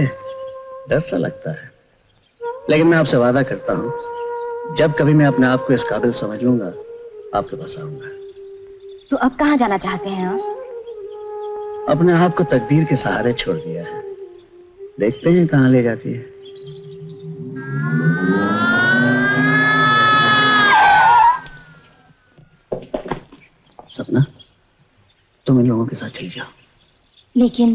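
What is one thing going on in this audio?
A man speaks emotionally and loudly, close by.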